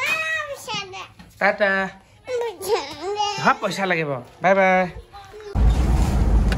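A small child babbles and whines close by.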